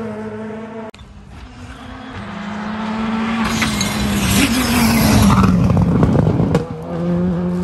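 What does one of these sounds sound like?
A rally car engine roars at high revs as it speeds past.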